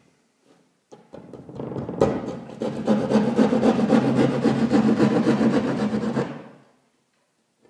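A hand tool rasps and scrapes against drywall in quick strokes.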